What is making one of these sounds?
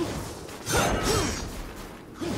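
A sword whooshes sharply through the air.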